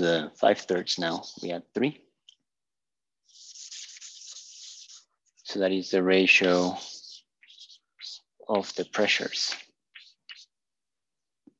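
A young man lectures calmly and close by.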